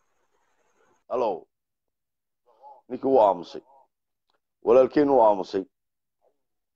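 A middle-aged man speaks calmly in short bursts, close to a phone microphone.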